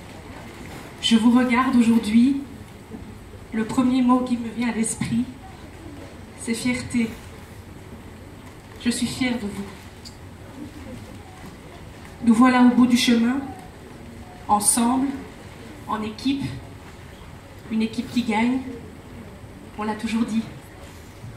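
A woman speaks into a microphone over a loudspeaker in a large echoing hall, announcing in short phrases.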